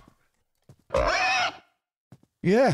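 A wild boar squeals loudly.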